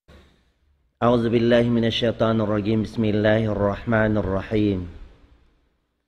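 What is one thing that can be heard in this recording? An elderly man chants melodically into a close microphone.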